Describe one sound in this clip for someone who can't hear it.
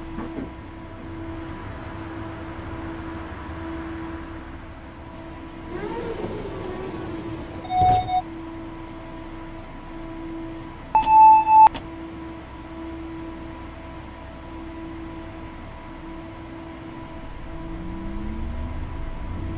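An electric train's motor hums steadily, rising in pitch as the train pulls away.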